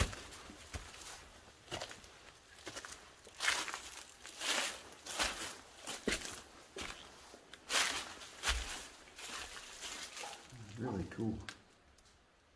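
Footsteps crunch through dry leaves and gravel.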